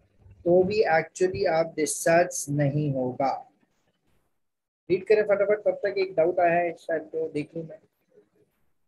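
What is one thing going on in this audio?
A man lectures calmly over an online call.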